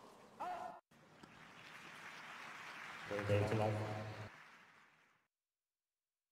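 A large crowd applauds and then fades away.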